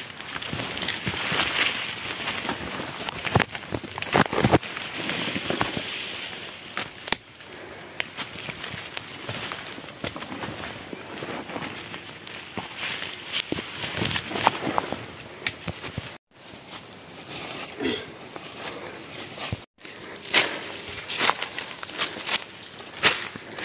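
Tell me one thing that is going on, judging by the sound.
Dry leaves rustle and crunch underfoot.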